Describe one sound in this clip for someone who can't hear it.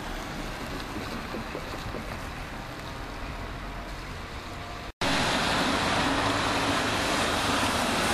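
Car tyres hiss on a wet road as traffic drives by.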